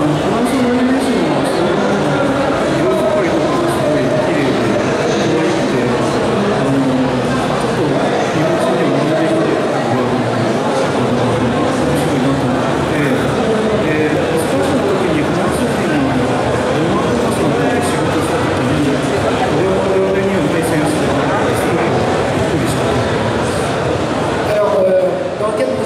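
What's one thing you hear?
A young man speaks with animation through a microphone and loudspeakers, outdoors.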